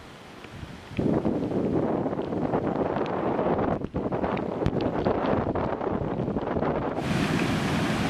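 Floodwater rushes down a rocky stream bed with a steady roar.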